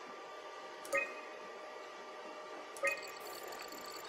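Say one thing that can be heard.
A computer menu beeps softly as options are selected.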